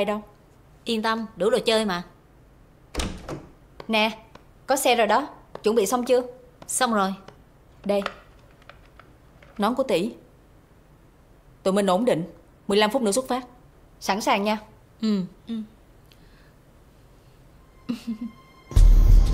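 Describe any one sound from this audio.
Young women talk with each other, calm and close.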